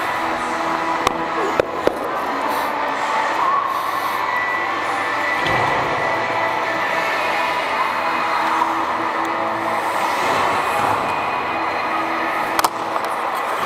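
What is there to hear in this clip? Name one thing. Hockey sticks clack on the ice and puck.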